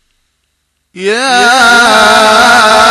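A man sings a drawn-out chant loudly through a loudspeaker.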